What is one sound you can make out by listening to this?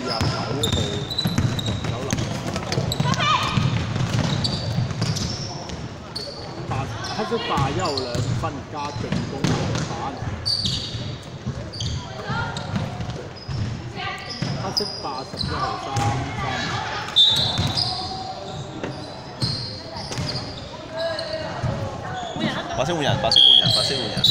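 Young women call out to each other during play in a large echoing hall.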